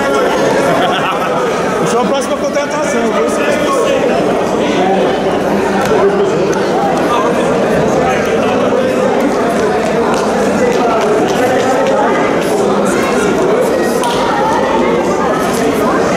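A man speaks with animation into a microphone, heard over loudspeakers in a large echoing hall.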